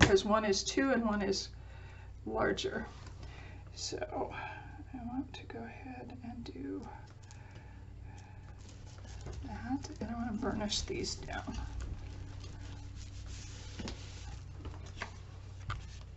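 Paper rustles and slides under hands.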